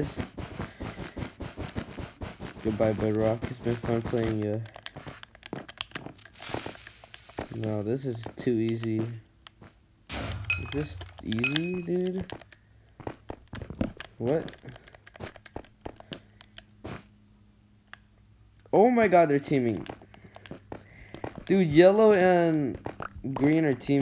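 Blocks are placed and broken with quick soft clicks.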